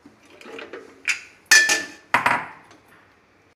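A metal lid clanks shut onto a pressure cooker.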